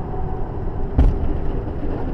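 A truck tyre bursts with a loud bang nearby.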